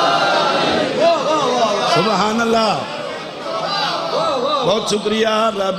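A man recites in a chanting voice through a loudspeaker.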